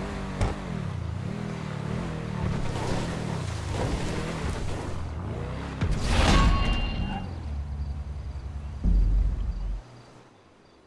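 A sports car engine runs as the car drives.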